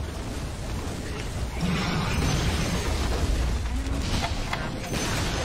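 Game spells crackle and burst in a battle.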